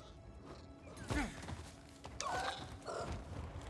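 A large flying creature screeches.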